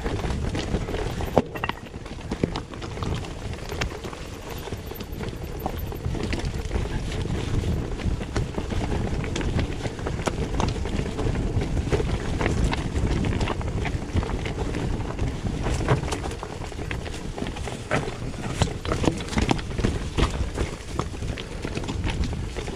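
A bicycle rattles and clatters over rocks.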